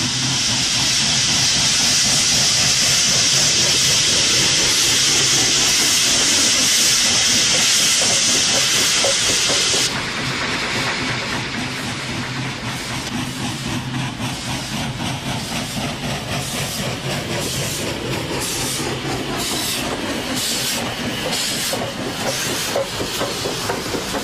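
A steam locomotive chuffs as it rolls slowly past.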